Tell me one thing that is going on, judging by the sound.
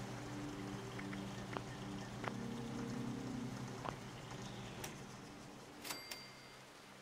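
Short interface clicks tick several times.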